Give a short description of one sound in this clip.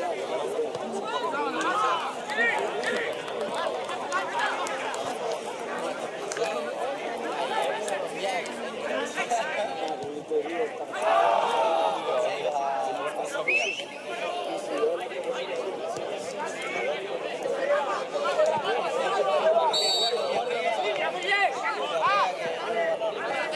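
Men shout to each other across an open outdoor pitch.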